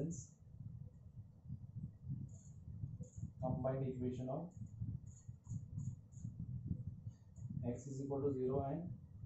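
An elderly man speaks calmly and clearly, as if explaining a lesson.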